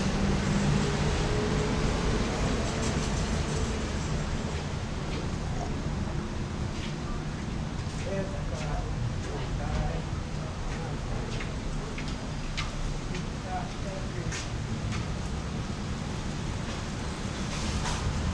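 Rain falls steadily outdoors, pattering and dripping onto pavement.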